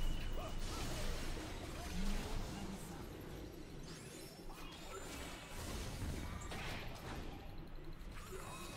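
Fantasy combat effects clash and whoosh in a video game.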